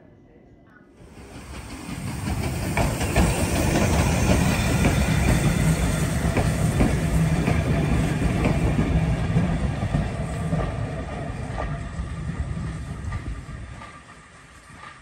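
A steam locomotive chuffs past close by.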